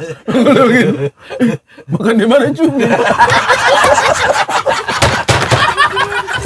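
A group of men laugh loudly together.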